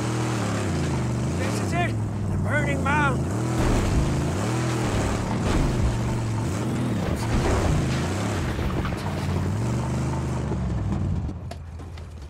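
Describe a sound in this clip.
A car engine rumbles and revs up and down as the car drives over rough ground.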